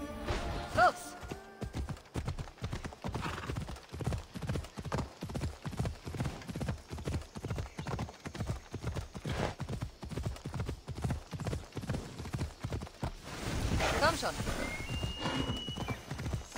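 Hooves thud steadily as a horse trots over the ground.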